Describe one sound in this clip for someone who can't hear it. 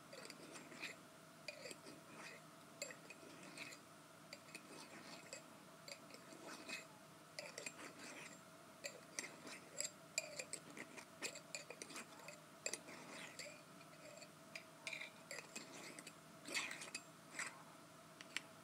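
Long fingernails tap and click on a glass jar close up.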